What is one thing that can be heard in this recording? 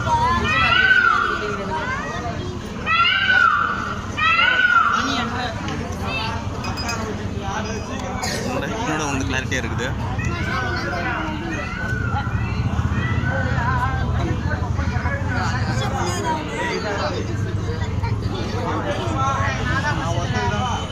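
Loud music with singing plays through loudspeakers outdoors.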